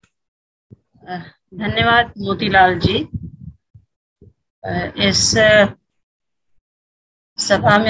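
An elderly woman speaks steadily over an online call.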